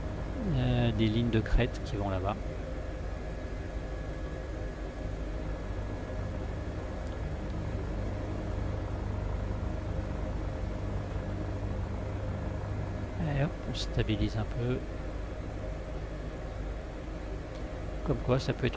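A helicopter engine and rotor drone steadily.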